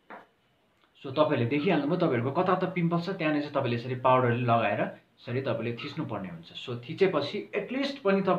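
A young man talks with animation, close to the microphone.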